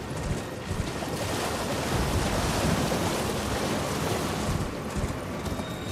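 Water splashes loudly under galloping hooves.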